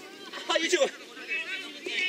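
Young men call out across an open field in the distance.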